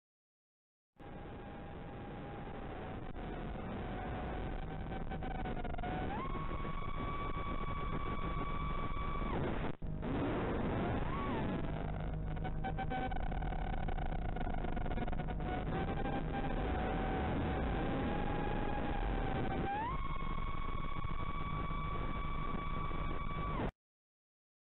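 Wind rushes past the drone.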